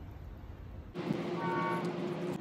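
A man exclaims excitedly.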